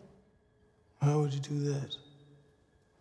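A man speaks quietly and low up close.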